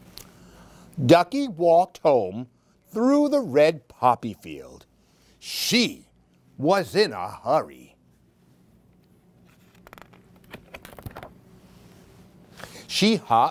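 A middle-aged man reads aloud expressively into a nearby microphone.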